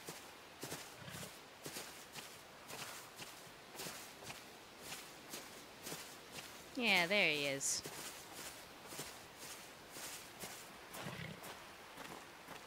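Footsteps crunch softly through grass at a slow, steady pace.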